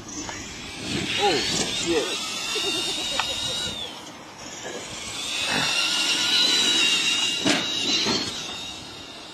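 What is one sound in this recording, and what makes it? A small electric motor whines as a toy car races.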